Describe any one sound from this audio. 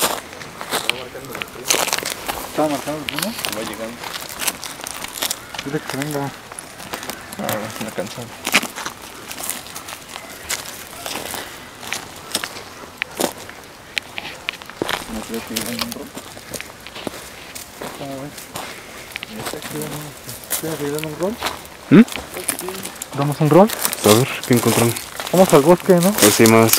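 Footsteps crunch through dry leaves and brush.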